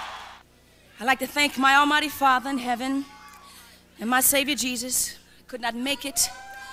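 A woman speaks emotionally into a microphone in a large hall.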